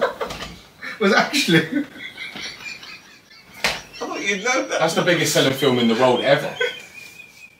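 A bearded man laughs loudly.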